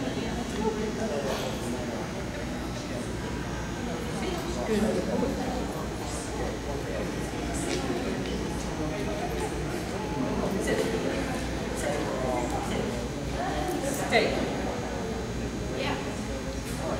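A woman gives short commands to a dog in a large echoing hall.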